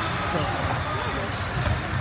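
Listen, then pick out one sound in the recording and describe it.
A volleyball is struck hard on a serve.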